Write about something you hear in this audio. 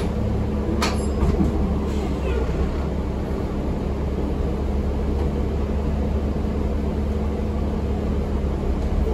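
A bus engine rumbles steadily inside the cabin.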